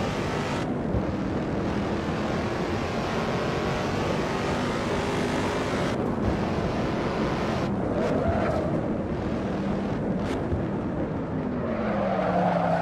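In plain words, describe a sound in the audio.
A racing car engine roars steadily at high revs, its pitch shifting as it changes gear.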